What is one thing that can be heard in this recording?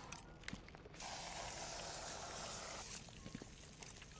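Gel hisses as it sprays onto a wall.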